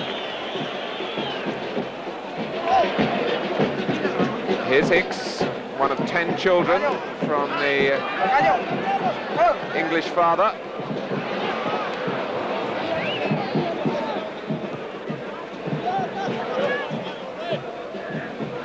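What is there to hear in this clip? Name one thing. A large stadium crowd roars and cheers throughout.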